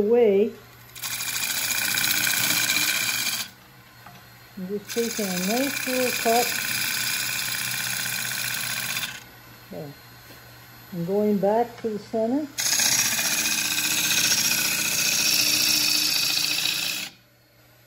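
A gouge scrapes and hisses against spinning wood in long bursts.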